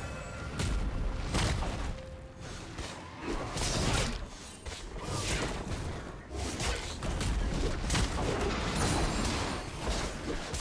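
Sword slashes and magic blasts hit in quick bursts.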